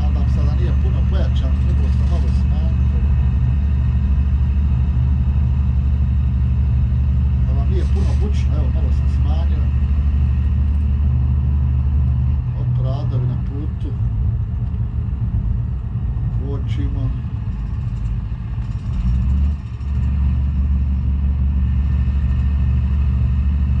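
A truck engine hums steadily at a low pitch.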